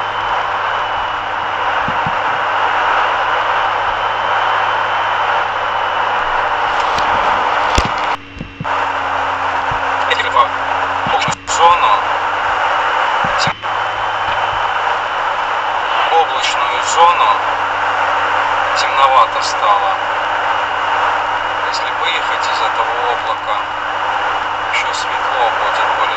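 A car engine hums steadily as tyres roll along the road.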